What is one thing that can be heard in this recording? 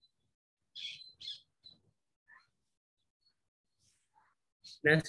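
An elderly man speaks calmly and close by, in short phrases.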